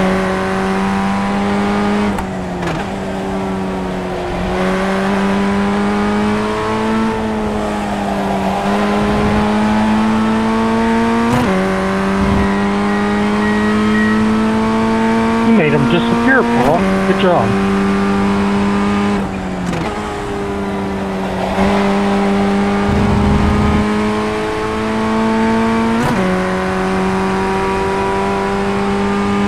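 A race car engine drones loudly, rising in pitch as it speeds up and dropping sharply with each gear shift.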